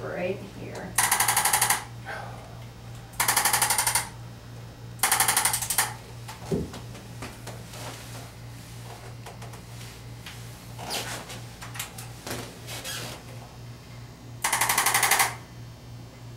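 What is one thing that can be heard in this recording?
A handheld adjusting tool clicks with rapid, buzzing thumps in short bursts.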